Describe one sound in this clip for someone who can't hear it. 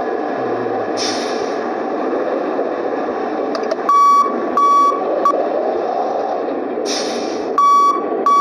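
Air brakes hiss briefly.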